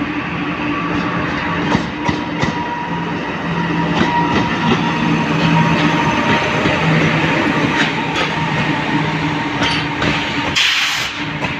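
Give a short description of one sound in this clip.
An electric locomotive rumbles past close by, its motors humming steadily.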